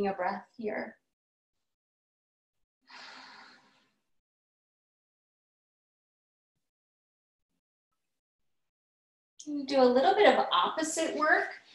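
A woman speaks calmly and softly into a microphone.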